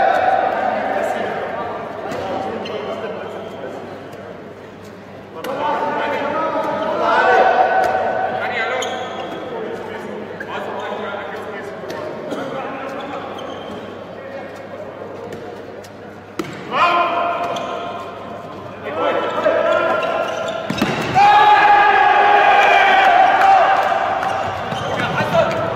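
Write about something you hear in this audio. A ball bounces on a hard court in a large echoing hall.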